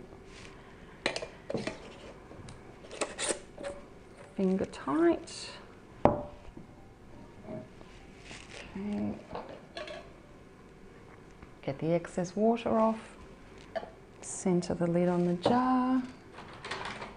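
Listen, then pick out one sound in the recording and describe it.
Glass jars clink as they are set down and handled.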